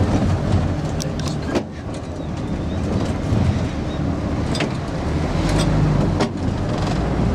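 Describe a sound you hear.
The bus body rattles and knocks over the road.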